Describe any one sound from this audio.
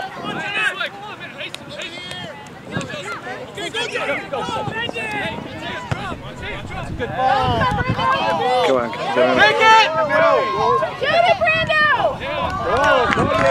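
Adult spectators shout and cheer excitedly nearby outdoors.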